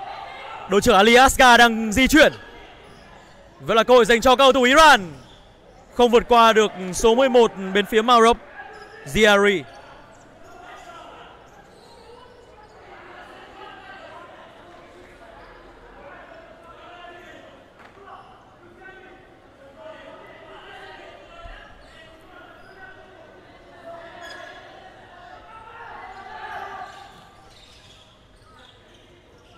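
Players call out to each other in a large echoing hall.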